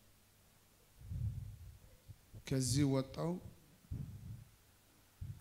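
A young man answers briefly through a microphone.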